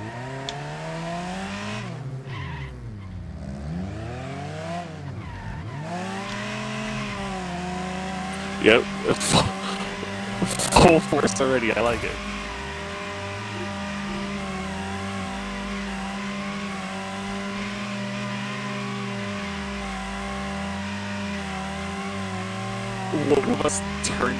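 A race car engine revs up and down.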